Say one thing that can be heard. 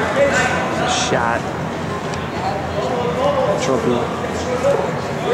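Spectators shout encouragement in an echoing gym.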